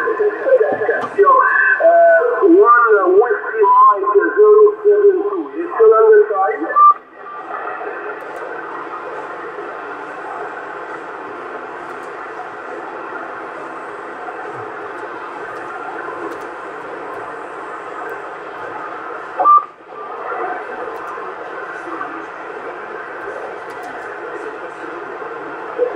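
Static hisses steadily from a radio receiver's loudspeaker.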